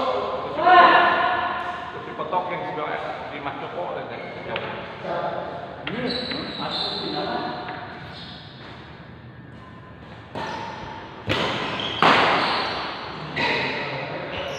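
Men shout and call out with animation in a large echoing hall.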